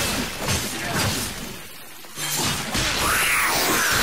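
Fiery blasts whoosh and roar.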